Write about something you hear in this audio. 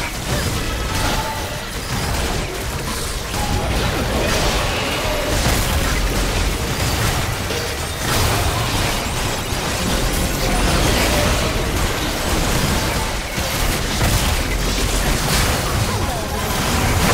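A large monster roars and strikes with heavy blows.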